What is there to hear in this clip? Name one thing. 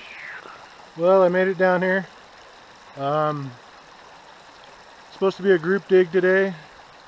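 A middle-aged man speaks calmly and close by, outdoors.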